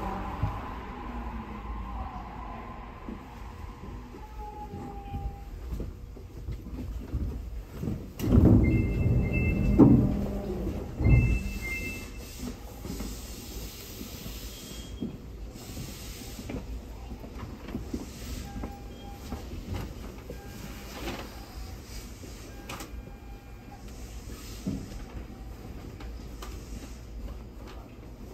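A train rumbles along a track and slows to a stop.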